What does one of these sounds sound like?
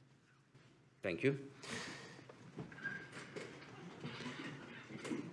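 People sit down in chairs with soft shuffling.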